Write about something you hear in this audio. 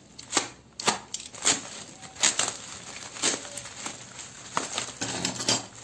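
Scissors snip through plastic wrap.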